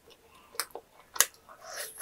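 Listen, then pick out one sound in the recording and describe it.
Sticky food crackles as fingers pull it apart.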